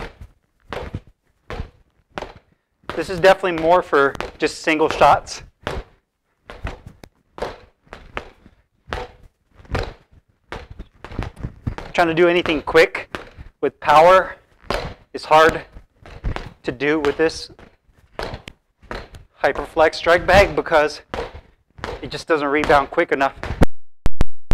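Gloved punches thump against a punching bag in quick bursts.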